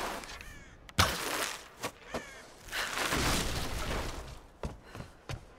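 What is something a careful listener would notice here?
A wooden crate smashes apart.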